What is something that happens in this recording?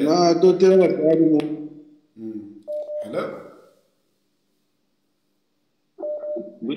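A man speaks slowly and softly, close to the microphone.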